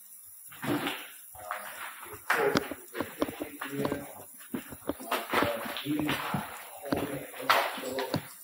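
Footsteps crunch on a gritty floor in an echoing tunnel.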